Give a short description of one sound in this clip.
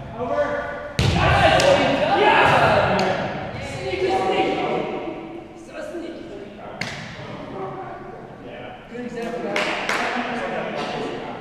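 Paddles sharply strike a ball.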